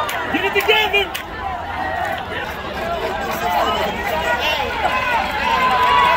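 A stadium crowd cheers and chatters loudly outdoors.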